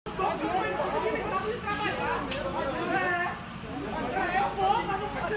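A crowd of men and women shout and argue loudly outdoors, heard from above at a distance.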